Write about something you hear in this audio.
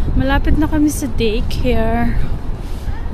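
A young woman speaks close to the microphone with animation.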